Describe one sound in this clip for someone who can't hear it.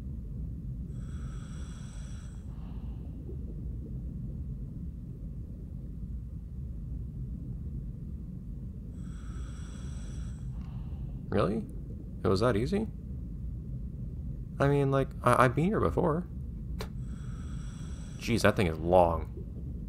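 Air bubbles gurgle from a diver's breathing gear underwater.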